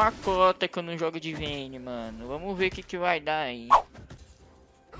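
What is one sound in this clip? A young man talks animatedly and close into a microphone.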